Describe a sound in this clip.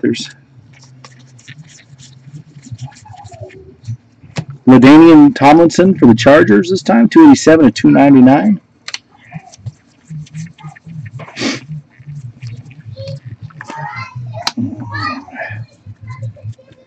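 Cardboard trading cards rustle and slide against each other in a person's hands.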